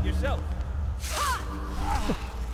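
A magic spell crackles and hisses with a sudden burst.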